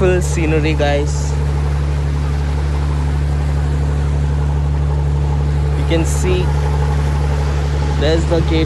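Water splashes and churns behind a boat.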